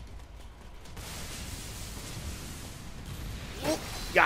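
Air whooshes past as a character swings through the air on cables.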